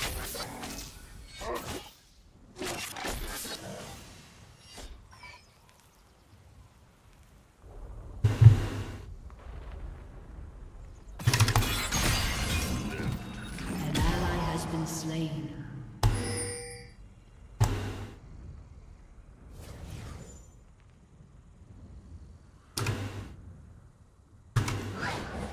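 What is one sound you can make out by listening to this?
A young man talks into a close microphone, now and then, with animation.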